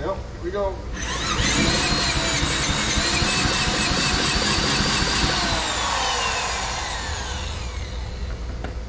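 A power drill whirs loudly and then winds down.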